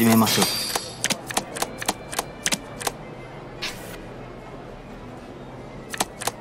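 Playing cards snap down onto a table one after another.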